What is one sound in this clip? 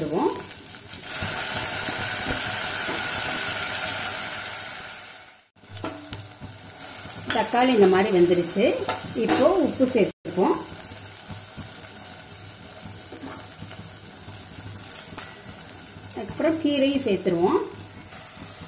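Food sizzles in hot oil in a pot.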